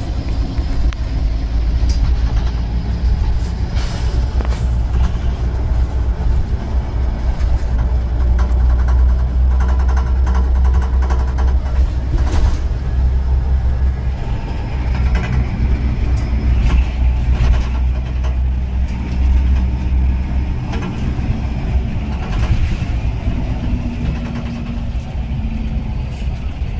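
The bus rattles and knocks over bumps in the road.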